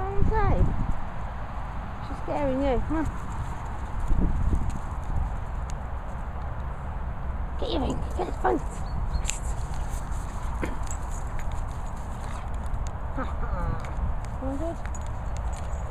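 A dog whines excitedly.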